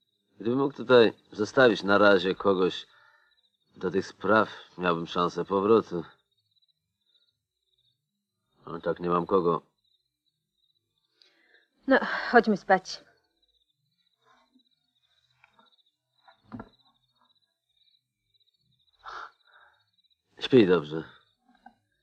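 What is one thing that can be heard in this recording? A man speaks quietly and earnestly close by.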